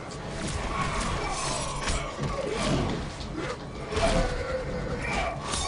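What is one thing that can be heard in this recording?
A magic blast whooshes in a fighting game.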